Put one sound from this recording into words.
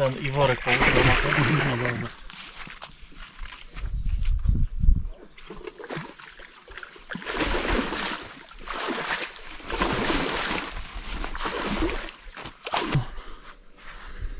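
A man talks with animation close to the microphone.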